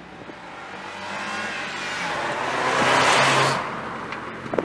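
A car drives past on the road.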